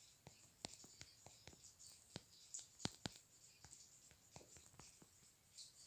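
Fingers tap quickly on a phone's touch keyboard.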